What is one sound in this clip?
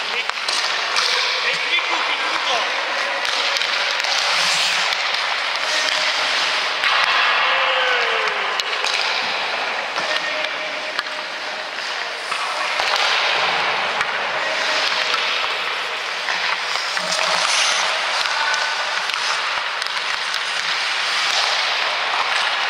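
Skates scrape and hiss across the ice in a large echoing rink.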